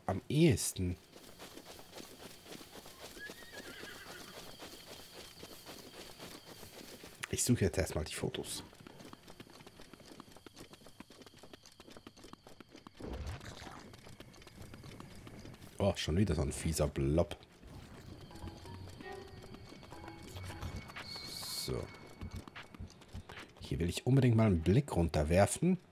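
Footsteps run across grass and sand.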